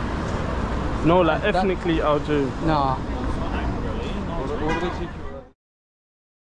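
Cars drive by on a nearby street.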